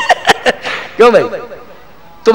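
A man laughs through a microphone.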